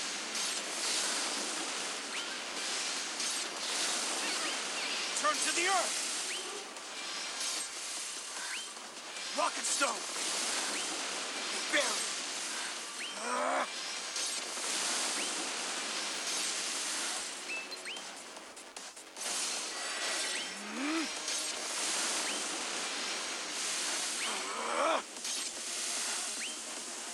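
Magic blasts and sword strikes crash and boom in rapid bursts.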